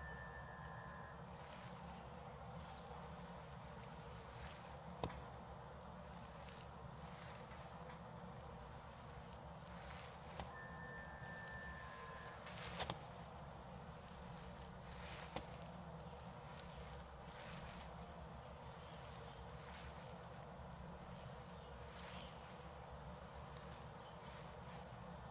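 A tool scrapes softly over oiled skin in repeated strokes.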